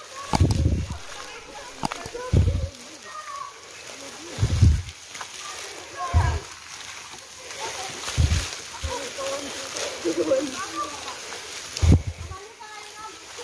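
Footsteps thud slowly on a soft forest path.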